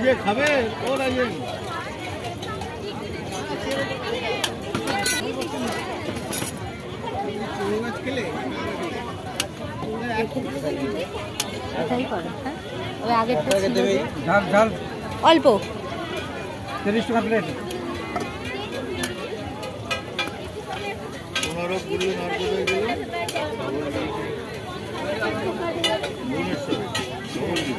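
A metal spoon clinks and scrapes against a steel bowl.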